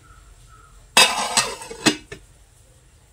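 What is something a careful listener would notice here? A metal lid clanks onto a metal pot.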